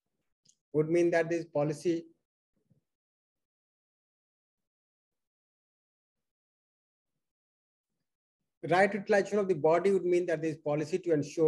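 A man speaks calmly into a close microphone, pausing at length between phrases.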